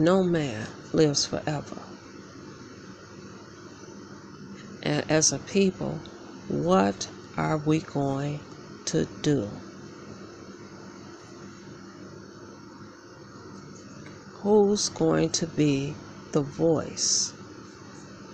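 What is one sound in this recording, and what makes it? A young woman speaks softly and close by, in short bursts with pauses.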